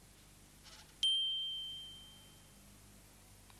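A metal bar is struck and rings with a clear high tone that slowly fades.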